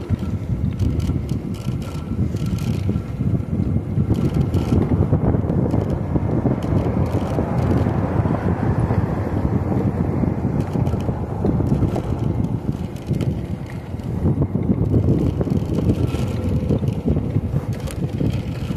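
Tyres roll steadily over smooth pavement.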